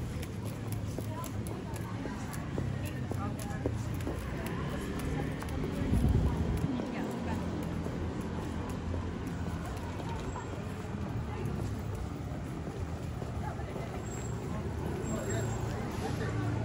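Footsteps tap on a paved street outdoors.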